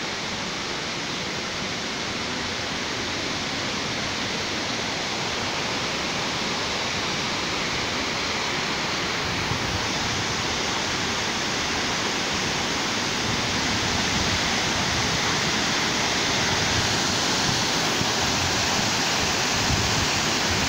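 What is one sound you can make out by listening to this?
A waterfall roars steadily, growing louder as it comes closer.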